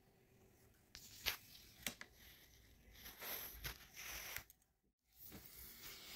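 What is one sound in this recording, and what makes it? Close handling noises rustle and thump against a microphone.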